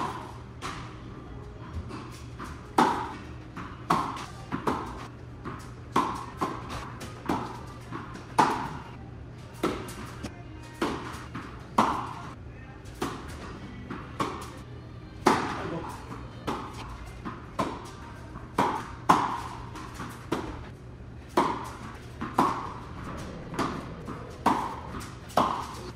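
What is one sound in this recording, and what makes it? A tennis racket strikes a ball again and again in an echoing indoor hall.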